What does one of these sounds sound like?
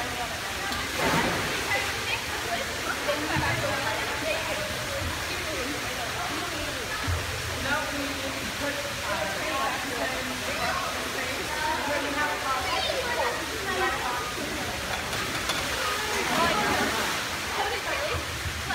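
Bodies splash into water.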